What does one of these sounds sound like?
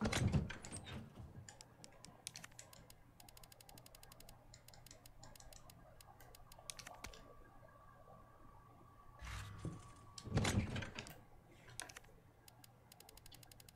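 Soft clicks and ticks sound as menu items are scrolled.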